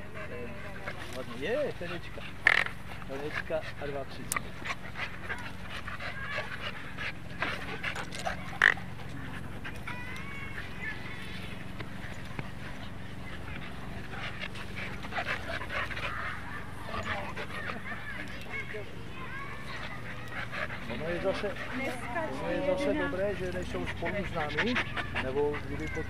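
Dogs pant and scuffle on grass.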